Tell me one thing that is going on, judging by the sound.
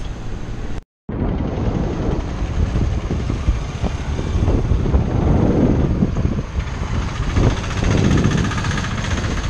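Wind blows loudly outdoors.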